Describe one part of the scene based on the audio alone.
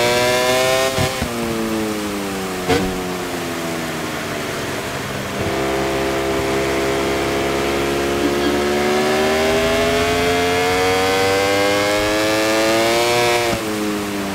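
A racing motorcycle engine whines, dropping in pitch as it slows into turns and rising again as it speeds up.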